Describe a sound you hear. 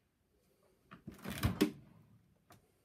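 A fridge door opens with a soft thud.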